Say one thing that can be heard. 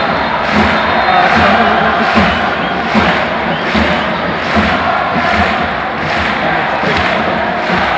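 A crowd beats drums in a steady rhythm.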